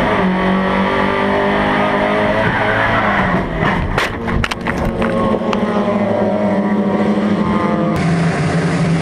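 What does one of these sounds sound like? A race car engine revs loudly up close.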